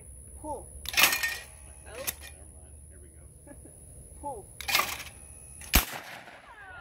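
Shotgun blasts boom outdoors, one after another.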